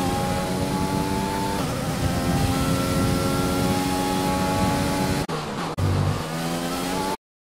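A racing car engine screams at high revs, its pitch dropping briefly with each gear change.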